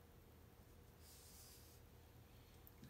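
A hand rubs lightly across paper.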